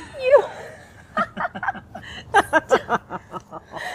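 A middle-aged woman laughs heartily, close by.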